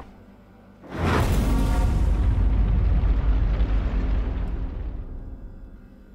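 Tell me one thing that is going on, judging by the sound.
A fire flares up with a loud roar and crackle.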